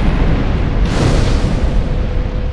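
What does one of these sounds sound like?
A fire ignites with a sudden whoosh.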